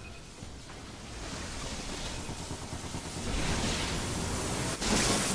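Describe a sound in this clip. A roaring energy beam hums and swells louder.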